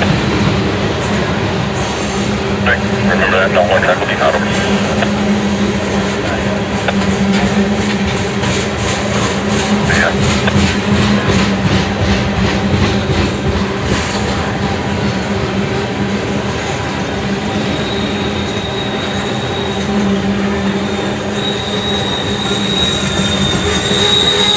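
Freight car wheels clack rhythmically over rail joints.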